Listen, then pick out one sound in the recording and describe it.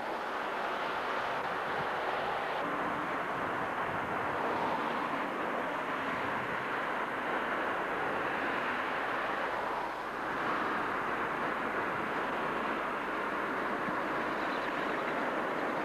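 A car drives by on a wet road, its tyres hissing.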